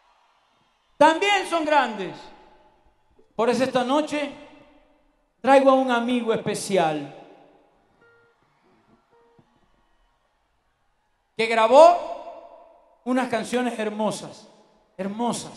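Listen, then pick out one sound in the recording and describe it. A man sings into a microphone through loudspeakers, in phrases with pauses.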